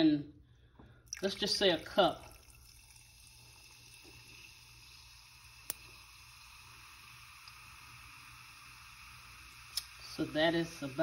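Soda pours and fizzes over ice.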